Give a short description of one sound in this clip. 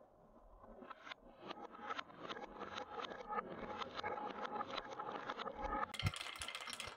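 Marbles click against each other as they roll along a wooden track.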